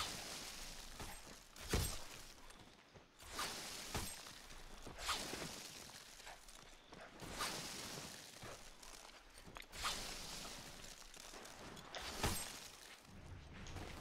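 Water rushes and splashes along a slide.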